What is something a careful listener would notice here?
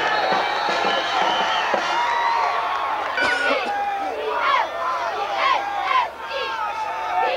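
A crowd of spectators cheers and shouts loudly from the stands.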